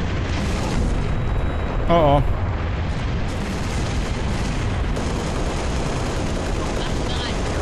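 A rifle fires bursts of rapid shots.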